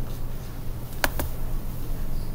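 A computer mouse clicks twice in quick succession.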